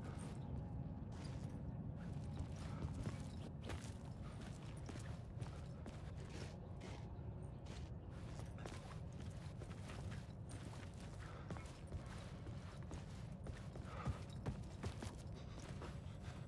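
Slow footsteps tread on a hard metal floor.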